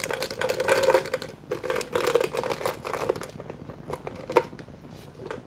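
Something rattles and clatters inside a shaken jar.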